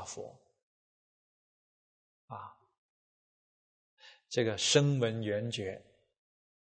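A man speaks calmly and clearly into a close microphone, with short pauses.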